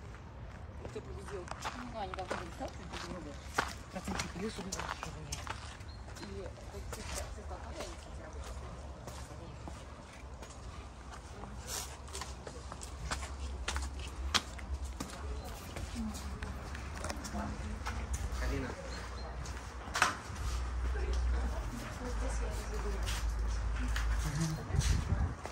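Footsteps tap on stone steps and paving.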